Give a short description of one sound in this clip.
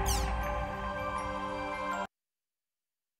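Electronic game music plays loudly, then cuts off abruptly.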